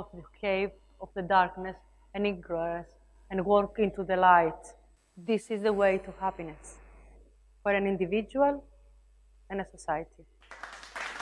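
A young woman speaks calmly through a microphone in a large hall.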